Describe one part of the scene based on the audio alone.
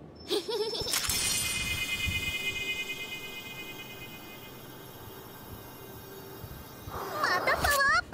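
A bright magical chime rings out and slowly fades.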